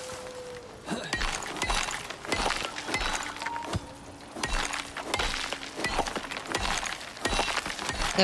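Plants rustle and snap as they are picked by hand.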